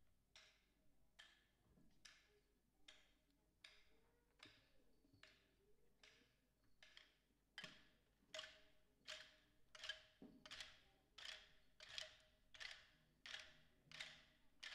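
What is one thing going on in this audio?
A band plays a steady, rhythmic tune in a large hall.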